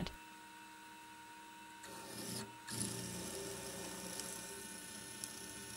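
A drill press whirs steadily as its bit cuts into metal.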